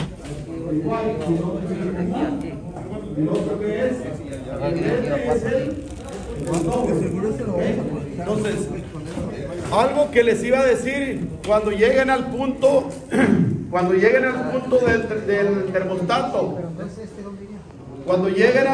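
Several other men chatter nearby.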